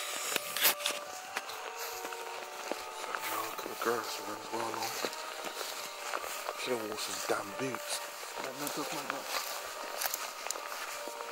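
Footsteps swish and crunch through long grass.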